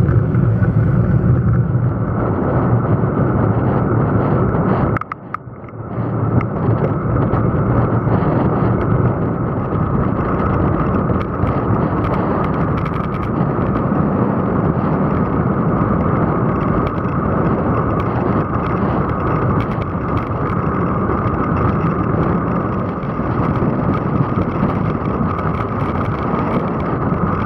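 Wind rushes loudly and steadily past a fast-moving bicycle rider.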